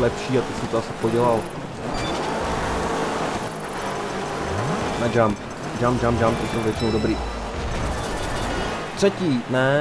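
A rally car engine revs and roars.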